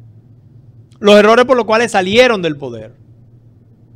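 An older man speaks calmly and clearly into a close microphone.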